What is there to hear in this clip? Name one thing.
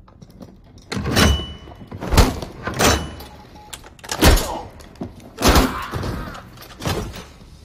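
Heavy punches thud against armour.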